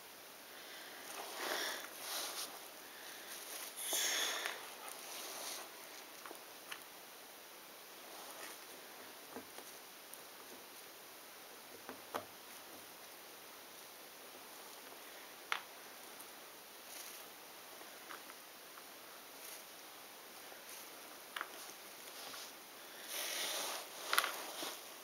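Puzzle pieces click and rustle under a hand.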